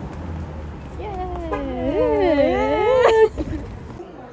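A young woman talks excitedly close by.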